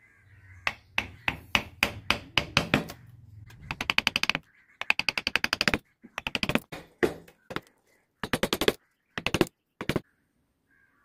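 A chisel clicks and scrapes sharply against wood in quick bursts.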